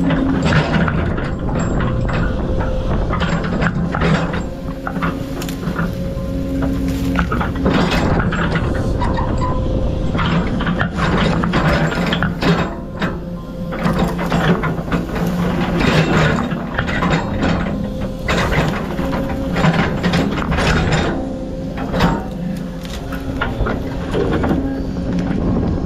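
Dirt and dry branches scrape and crunch under a machine's blade.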